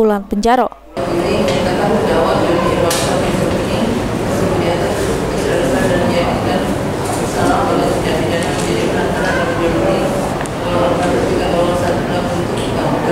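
A middle-aged woman reads out steadily through a microphone in an echoing room.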